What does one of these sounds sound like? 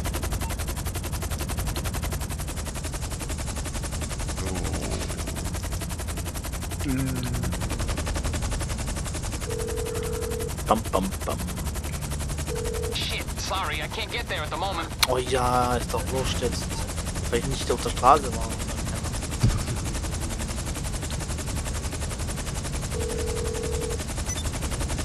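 A helicopter's rotor chops steadily overhead.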